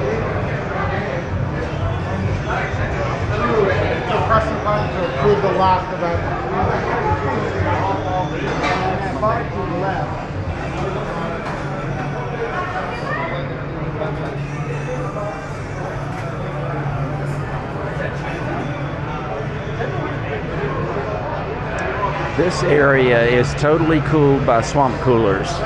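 A crowd of men and women chatters in a large echoing room.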